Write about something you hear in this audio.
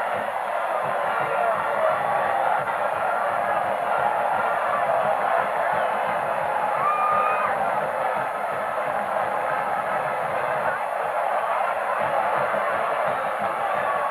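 A large crowd cheers and roars loudly outdoors.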